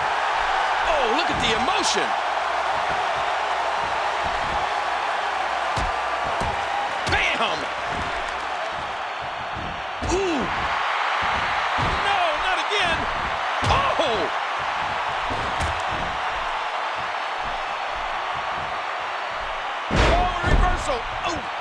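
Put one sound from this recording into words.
Heavy bodies slam onto a wrestling mat with loud thuds.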